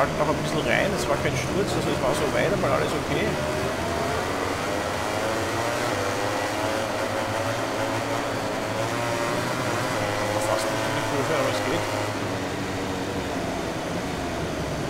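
A motorcycle engine whines loudly, its pitch rising and falling as it speeds up and slows down.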